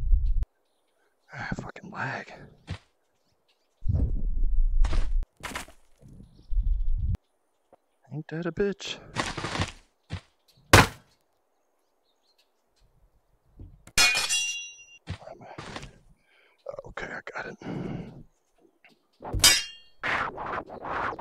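Wooden and metal weapons clatter and knock in short bursts.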